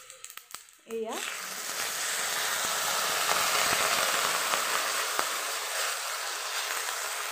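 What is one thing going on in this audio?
Water pours into a hot pan and sizzles loudly.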